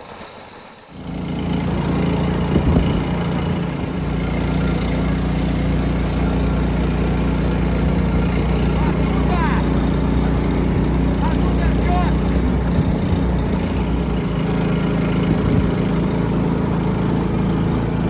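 An engine drones steadily.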